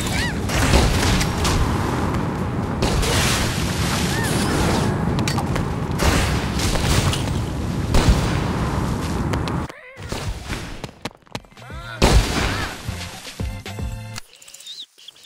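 Loud game battle effects and music play.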